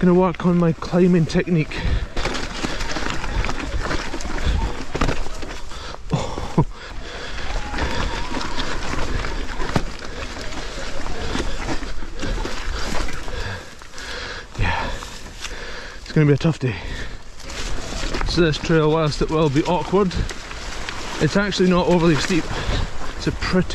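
A bicycle rattles and clunks as it bumps over rocks.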